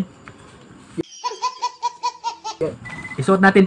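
A baby laughs loudly in bursts.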